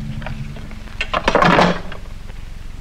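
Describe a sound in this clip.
A metal tin clatters as it is set down.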